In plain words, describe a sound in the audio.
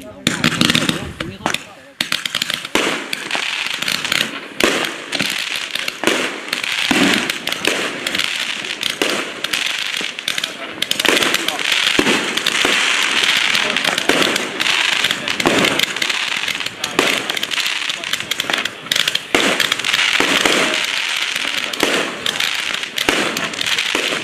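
Firework shells bang and pop in quick bursts.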